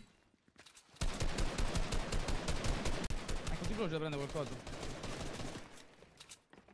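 Rapid gunfire crackles in a video game.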